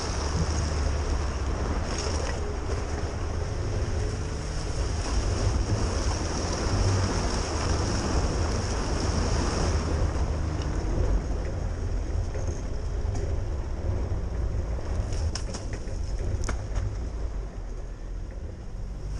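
A vehicle engine rumbles steadily at low speed.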